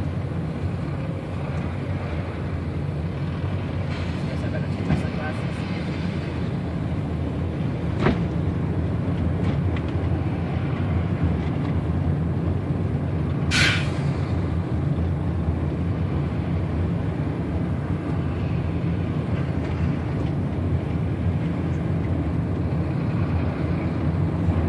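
Heavy trucks and buses rush past close by, one after another.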